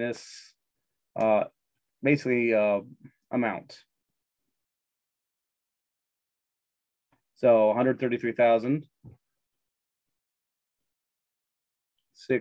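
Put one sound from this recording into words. A man explains calmly through a microphone, in short bursts with pauses.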